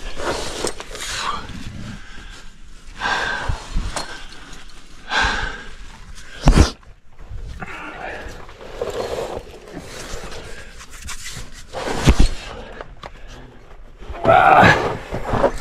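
Hands scrape and grip against rough rock.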